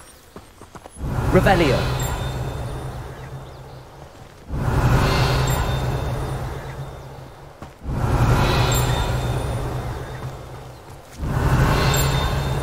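A magic spell crackles and bursts.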